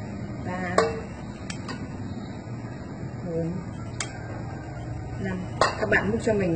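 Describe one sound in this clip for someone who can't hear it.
Thick sauce pours and plops into a bowl.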